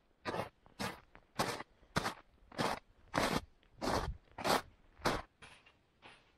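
Boots crunch loudly through snow in steady footsteps close by.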